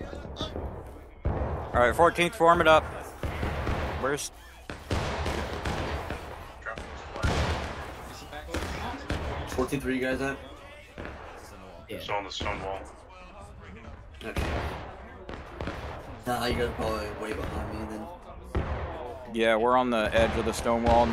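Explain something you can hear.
Rifle shots crack repeatedly, some close and some distant.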